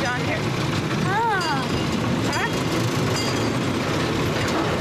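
A boy talks close by.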